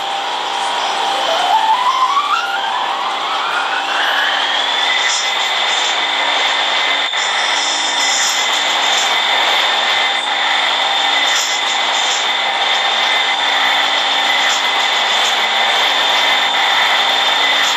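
An electric train's motors whine, rising in pitch as it speeds up and then holding steady.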